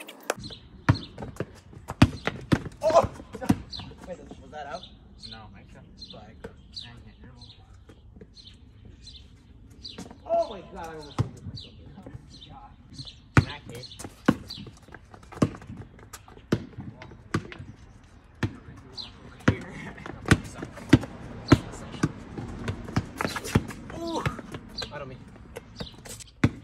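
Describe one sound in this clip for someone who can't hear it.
A basketball bounces on asphalt outdoors.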